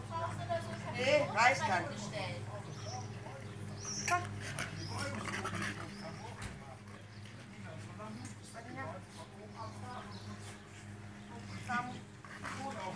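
A woman talks calmly to dogs close by.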